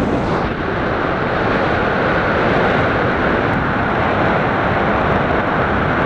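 Strong wind rushes steadily past, loud and blustery.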